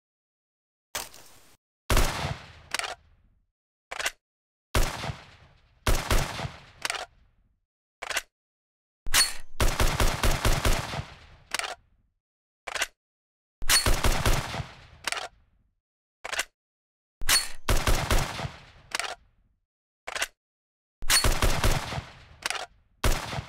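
A rifle fires single loud shots and bursts, each ringing out briefly.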